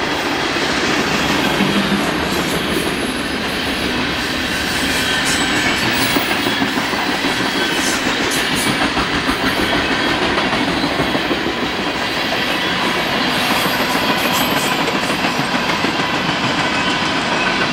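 A long freight train rumbles past close by, its wheels clattering and squealing on the rails.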